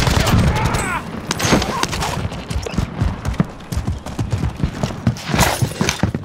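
A rifle clatters and clicks during a reload.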